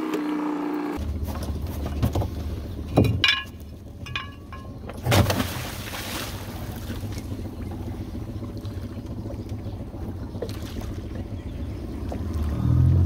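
An outboard motor hums steadily.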